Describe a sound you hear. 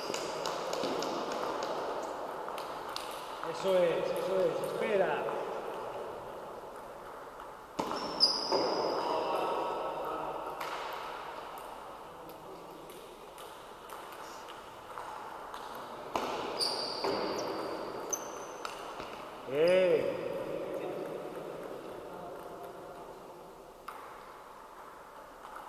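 A table tennis ball clicks back and forth off paddles and the table in a large echoing hall.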